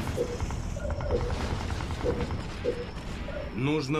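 An electronic interface chime sweeps up and down.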